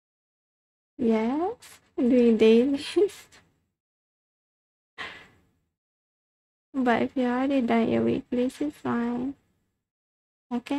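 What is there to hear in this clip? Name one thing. A young woman speaks animatedly and close to a microphone, in short bursts.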